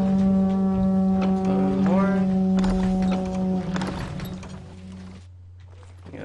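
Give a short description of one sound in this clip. A deep siege horn blows a long, steady note.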